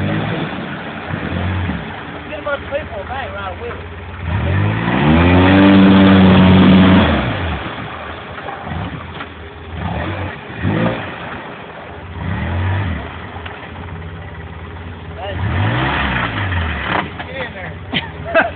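Wheels churn and splash through wet mud.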